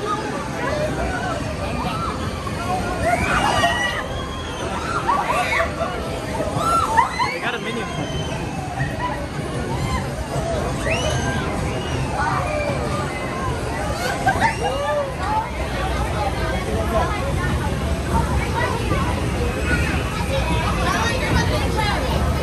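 A ride's machinery rumbles steadily.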